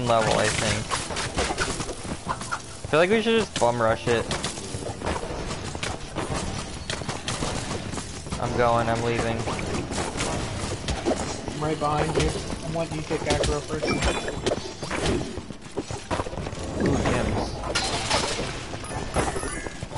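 Blades swing and strike repeatedly in a fast fight.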